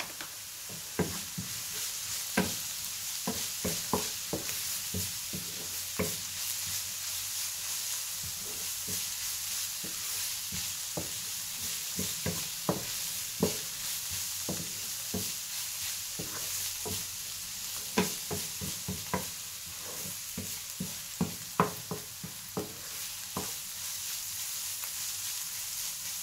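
A wooden spoon scrapes and taps against a frying pan.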